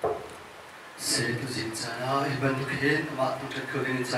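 A second young man speaks calmly into a microphone.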